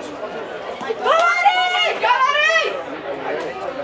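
Spectators cheer loudly as a player runs with the ball.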